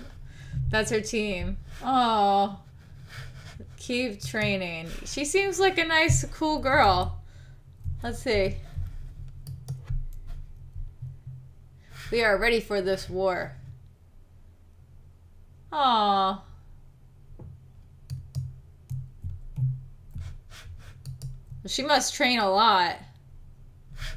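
A young woman talks with animation into a nearby microphone, in bursts with pauses.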